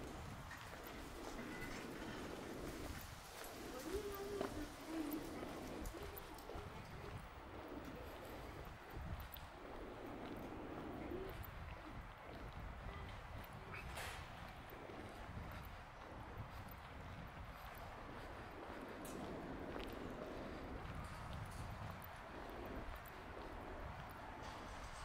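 Traffic hums steadily along a nearby road.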